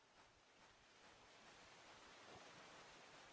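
Water laps and splashes softly.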